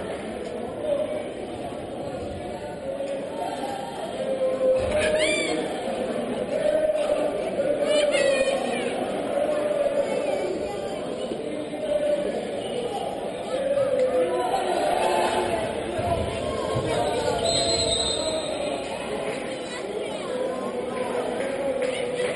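A crowd murmurs and cheers throughout a large echoing hall.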